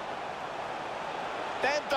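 A football is struck with a foot.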